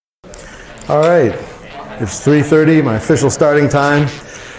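A man speaks through a microphone in a large echoing room.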